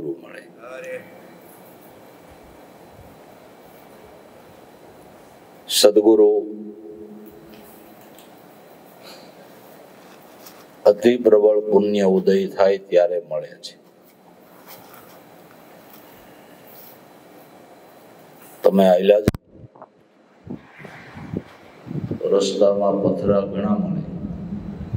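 An elderly man speaks calmly through a microphone and loudspeakers, in bursts with pauses.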